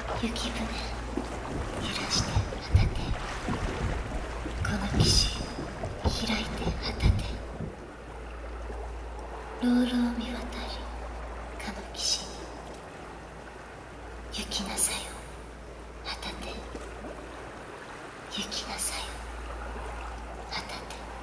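A young woman's voice softly chants.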